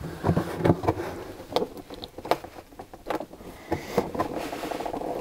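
Plastic parts click and knock as a man handles a battery lid.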